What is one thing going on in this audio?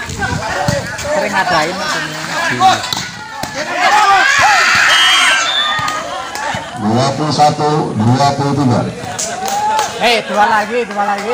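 Young men call out to each other during play.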